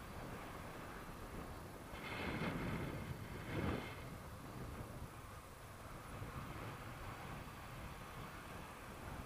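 Wind rushes steadily past the microphone outdoors.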